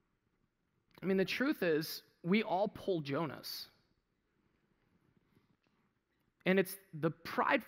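A man speaks with animation through a headset microphone, pausing between phrases.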